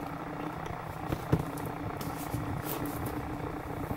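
A heavy book is set down on a hard surface with a soft thud.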